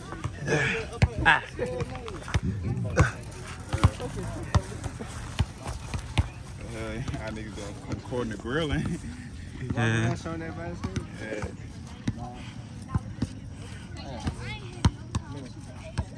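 Young people talk and call out nearby outdoors.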